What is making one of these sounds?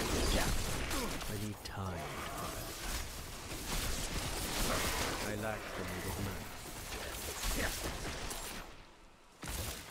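Fighting clashes with thuds and hits.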